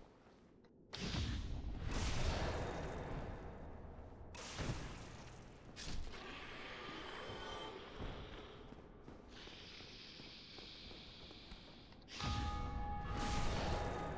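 Swords clash and heavy blows land in a fight.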